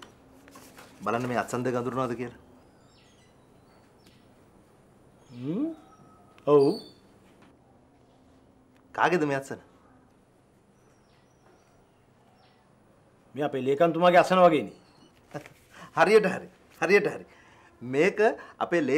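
A younger man talks with animation close by.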